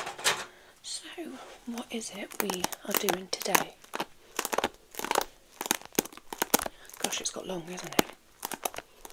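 A woman speaks softly close to a microphone.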